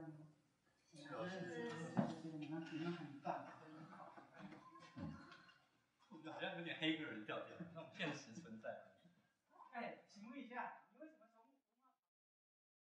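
Several young women laugh and chatter.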